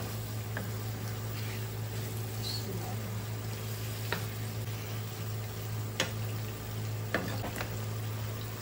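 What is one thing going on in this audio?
A wooden spoon scrapes and knocks against a frying pan.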